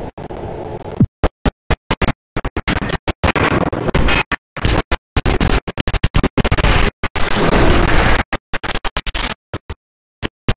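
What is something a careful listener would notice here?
A gun fires rapid bursts of shots.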